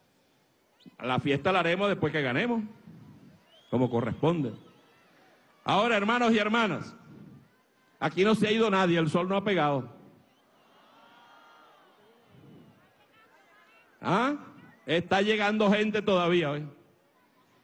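A man speaks loudly and forcefully through a microphone over loudspeakers, in short bursts.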